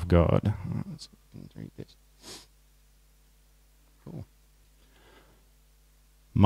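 A young man reads aloud into a microphone, pausing between phrases.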